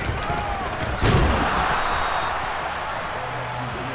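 A crowd cheers loudly, swelling and then slowly fading.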